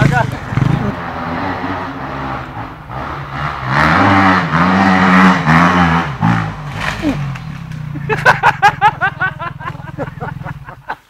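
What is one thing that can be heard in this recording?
A second dirt bike engine approaches and revs loudly up close.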